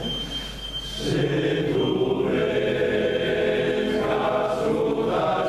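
A choir of older men sings together in a reverberant hall.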